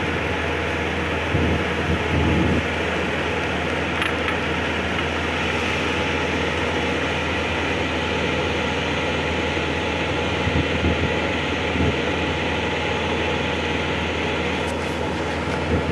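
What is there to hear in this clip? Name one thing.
Wind rumbles steadily outdoors, with gusts buffeting now and then.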